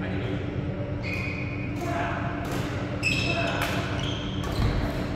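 Rackets strike a shuttlecock back and forth in a large echoing hall.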